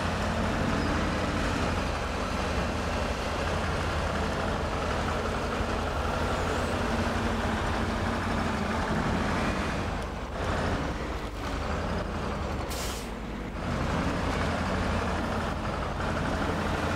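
Tyres crunch and scrape over rocks.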